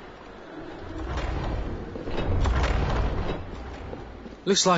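A heavy wooden door swings open with a low rumble.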